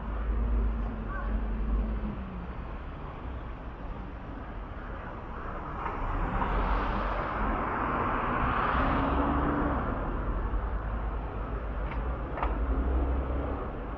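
City traffic hums and rushes by on a street.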